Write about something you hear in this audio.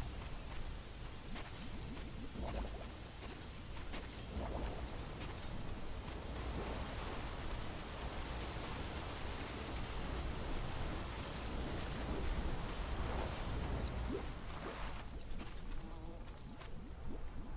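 Footsteps crunch on dry gravel.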